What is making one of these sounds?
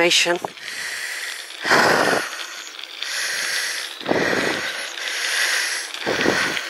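Tyres roll and crunch over a gravel path.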